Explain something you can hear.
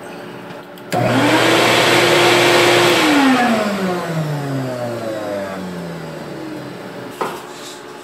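An electric spindle motor whirs up to speed with a high whine, holds steady, then winds down.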